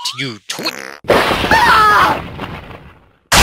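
A magic blast crackles and whooshes.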